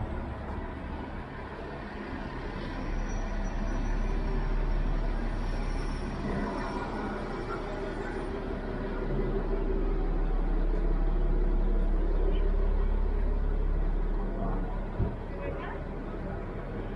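A city bus hums as it idles and rolls along the street.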